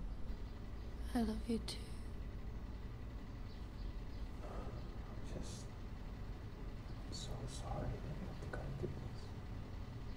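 A young woman speaks softly and sadly close by.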